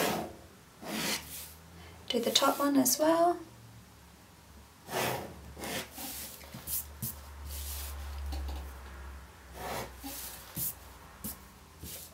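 A pencil scratches across paper along a ruler.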